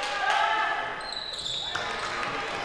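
A referee blows a short whistle.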